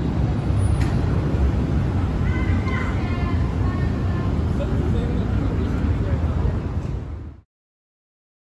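Cars drive past with a low rumble.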